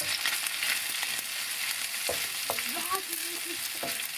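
A wooden spoon scrapes and stirs in a frying pan.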